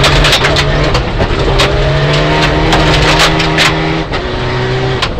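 A rally car engine roars loudly at high revs, rising and dropping as the driver shifts gears.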